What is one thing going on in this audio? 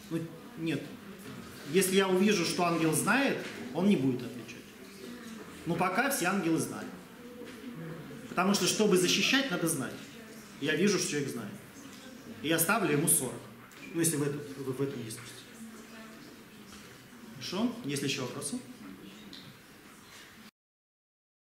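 A middle-aged man lectures calmly.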